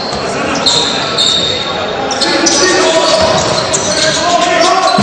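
Basketball sneakers squeak on a hardwood court in a large echoing hall.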